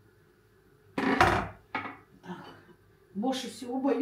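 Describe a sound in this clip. A plate clatters against a hard counter.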